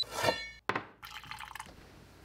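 Coffee pours and splashes into a mug.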